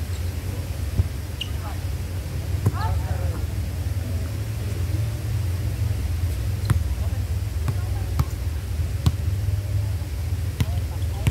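A volleyball is struck by hands with sharp slaps.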